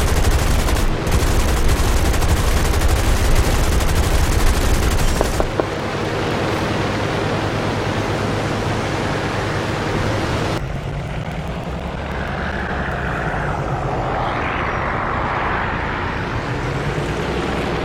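A propeller plane engine roars steadily.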